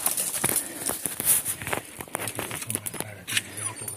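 A dog sniffs at the ground.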